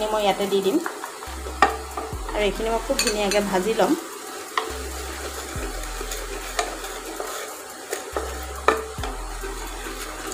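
Flour sizzles softly in hot fat.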